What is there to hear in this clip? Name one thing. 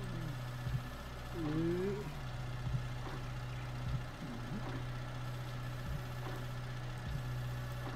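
A small diesel engine idles steadily.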